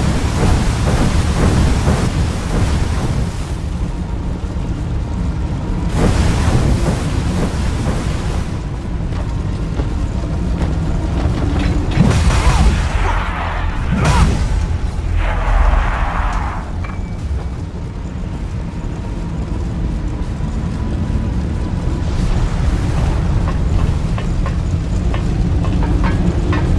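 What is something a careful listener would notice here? Fire roars and crackles steadily all around.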